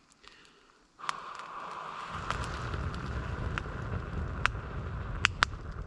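Air hisses steadily through a blowing tube into a fire.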